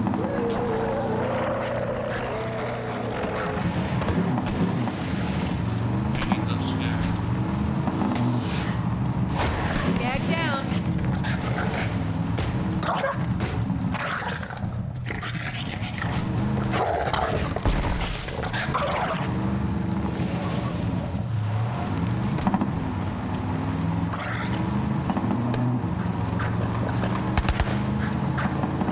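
A man talks casually close to a microphone.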